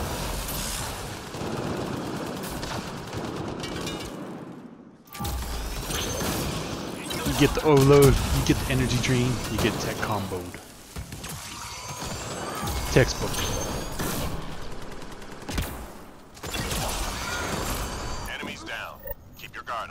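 Gunfire and energy blasts crackle in a game battle.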